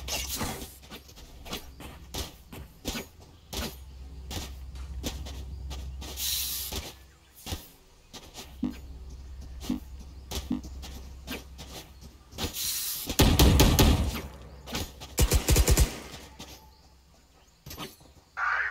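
Footsteps patter quickly across hard ground.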